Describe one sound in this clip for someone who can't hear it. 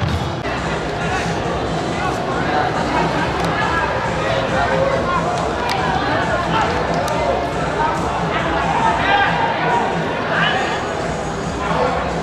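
A crowd of spectators murmurs and calls out in an open stadium.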